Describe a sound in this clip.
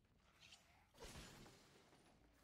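A blade swooshes in a fast slashing strike.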